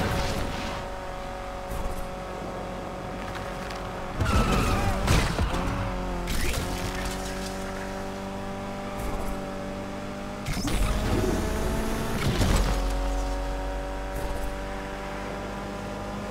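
A racing car engine roars steadily, its pitch shifting as gears change.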